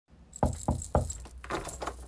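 Knuckles knock three times on a door.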